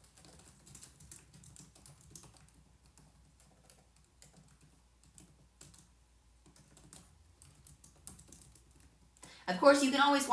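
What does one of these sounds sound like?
A woman types on a laptop keyboard.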